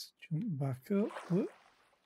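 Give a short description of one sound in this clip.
Water splashes.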